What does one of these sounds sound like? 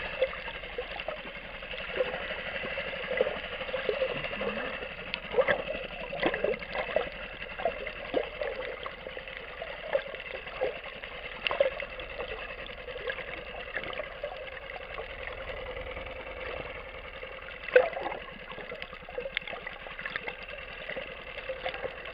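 Sharp clicks and crackles pop underwater, muffled by the water.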